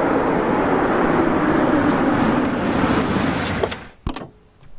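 A car engine rumbles as a vehicle drives over a rough road.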